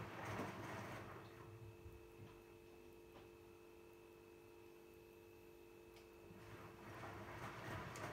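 A washing machine motor hums steadily.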